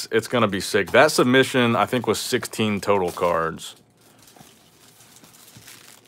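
Plastic wrap crinkles and rustles as it is peeled off a box.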